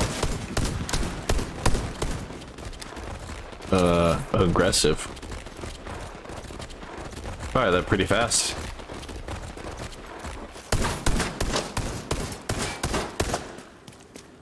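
Rapid gunfire crackles and bursts nearby.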